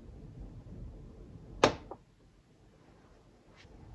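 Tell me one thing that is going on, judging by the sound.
A glass carafe clinks as it is set down on a stone counter.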